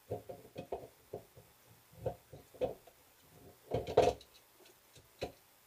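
Metal parts clink as a man handles them.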